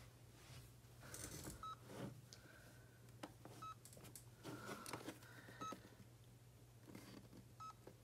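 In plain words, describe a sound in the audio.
A plastic device is picked up and handled, knocking and rubbing softly.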